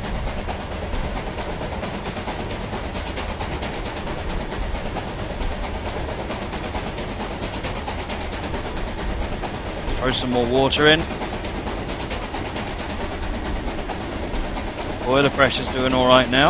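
A steam locomotive chugs steadily.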